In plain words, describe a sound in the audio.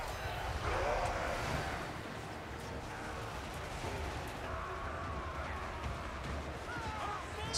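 A large battle rages with a dense roar of clashing weapons.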